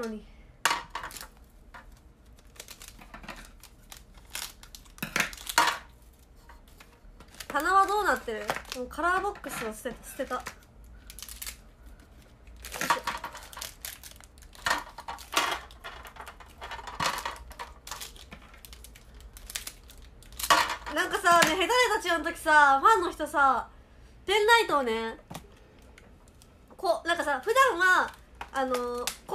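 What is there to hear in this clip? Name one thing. Plastic packaging rustles and crinkles in handling.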